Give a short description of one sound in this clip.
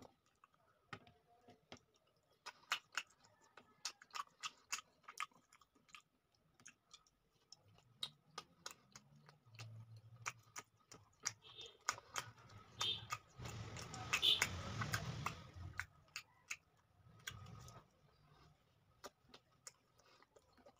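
Fingers tear and squelch through soft, saucy chicken close up.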